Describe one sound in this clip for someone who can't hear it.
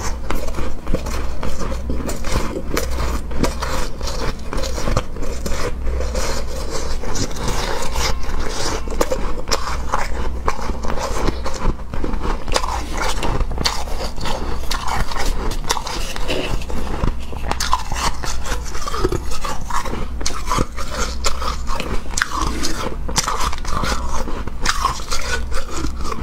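A young woman crunches and chews ice loudly, close to the microphone.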